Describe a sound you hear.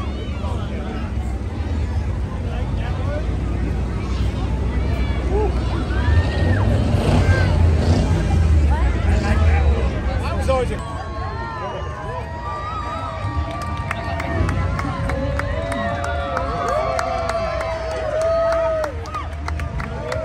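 A crowd of people chatters and cheers nearby outdoors.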